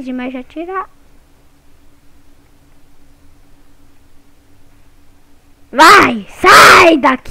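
A young boy talks excitedly into a headset microphone, close up.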